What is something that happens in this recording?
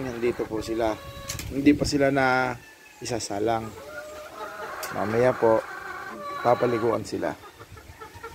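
Roosters crow loudly and close by.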